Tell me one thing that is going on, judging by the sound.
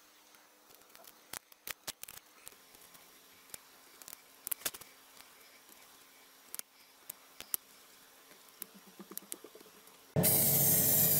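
A craft knife scrapes and clicks against small plastic parts.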